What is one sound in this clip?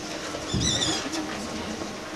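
A microphone thumps loudly.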